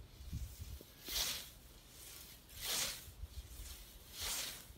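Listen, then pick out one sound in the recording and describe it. A scythe swishes through tall grass in repeated strokes.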